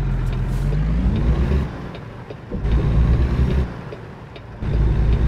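A truck engine rumbles low and steady, swelling and easing in bursts.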